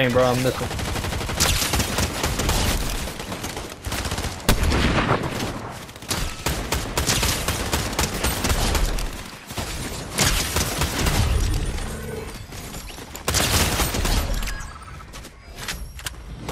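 Rapid rifle shots fire in bursts.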